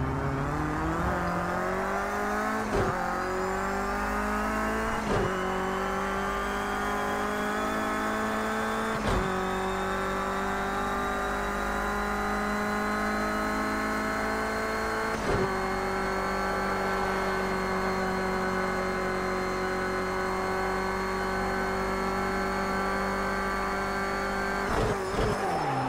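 A racing car engine roars loudly, climbing in pitch and shifting up through the gears.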